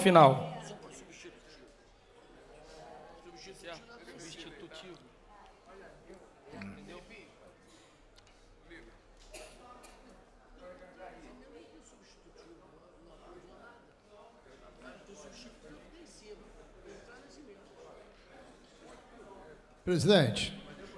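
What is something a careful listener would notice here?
Several people murmur and chat quietly in the background.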